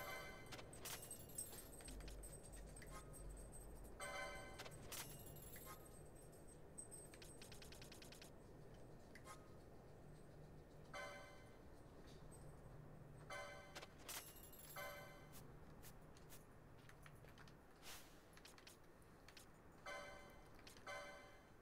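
Short electronic menu chimes beep now and then.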